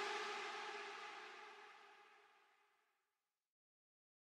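An electric guitar chord rings out and slowly fades away.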